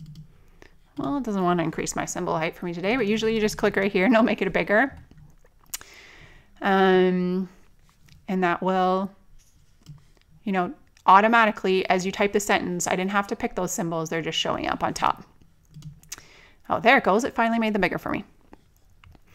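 A woman talks calmly and clearly into a close microphone.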